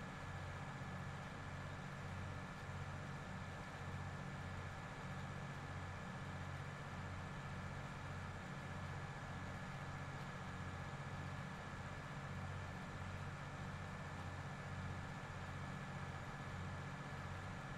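A tractor engine hums steadily with a low throbbing pulse.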